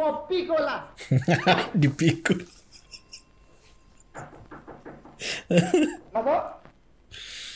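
A man laughs loudly, close to a microphone.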